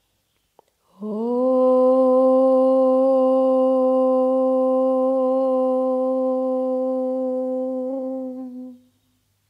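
A young woman chants one long, steady note that slowly fades out.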